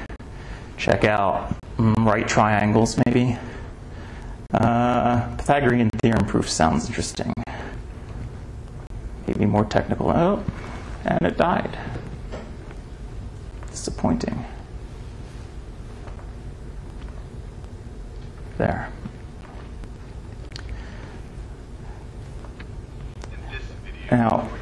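A man speaks in short bursts in a large room.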